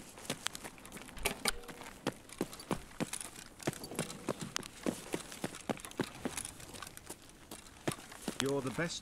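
Footsteps tread quickly on a hard floor.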